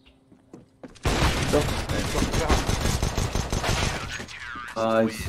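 Rapid gunfire rattles from a video game.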